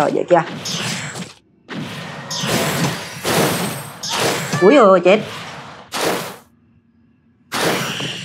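Magic blasts crackle and burst during a fight.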